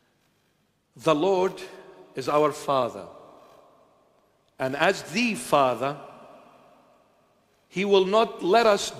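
An elderly man speaks with animation into a microphone, his voice ringing in an echoing hall.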